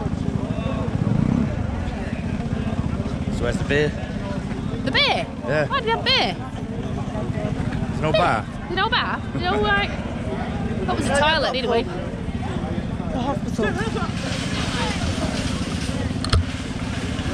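Scooter engines idle and rumble outdoors.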